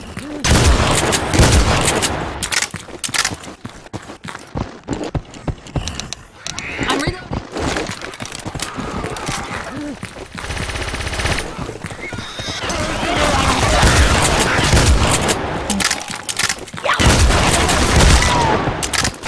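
Shotgun blasts boom loudly and echo.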